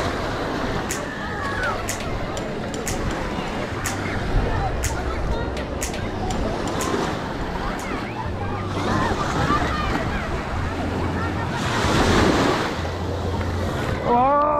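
Small waves wash and break on the shore.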